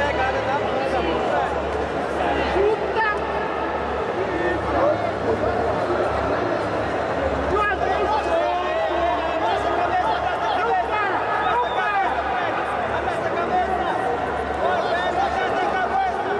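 A crowd chatters and calls out throughout a large echoing hall.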